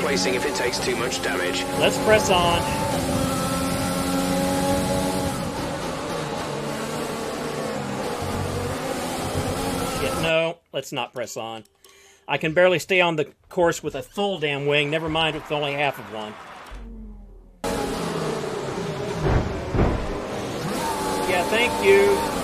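A racing car engine whines and revs loudly.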